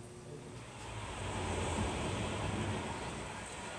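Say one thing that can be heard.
A rally car engine revs through a television loudspeaker.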